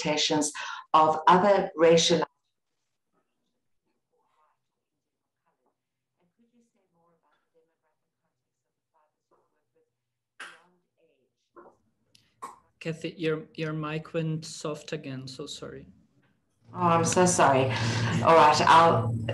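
A middle-aged woman speaks with animation over an online call.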